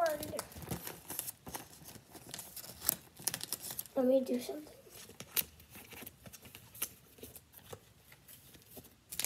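Trading cards rustle and click as they are handled.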